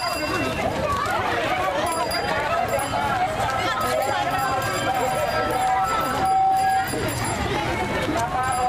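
A crowd of girls and young women chatters and calls out outdoors.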